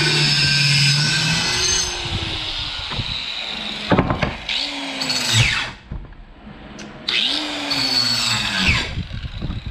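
A circular saw motor spins up and winds down.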